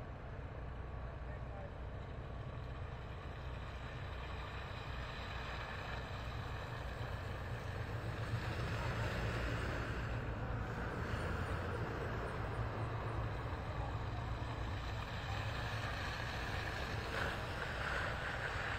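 Vehicle engines rumble low and steady nearby.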